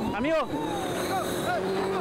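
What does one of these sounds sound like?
A rally car slides through a dirt corner.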